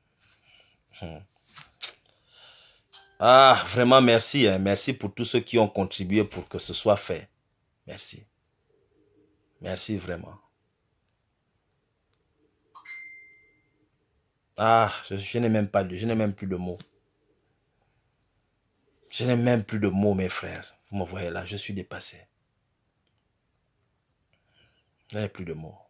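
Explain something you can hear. A man speaks close to a phone microphone in bursts, with pauses between.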